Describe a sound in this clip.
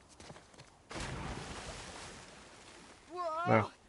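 Water splashes loudly as a body drops into a pool.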